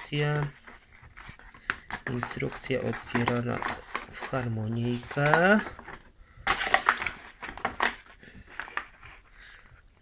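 Paper pages rustle and flap as a booklet is opened.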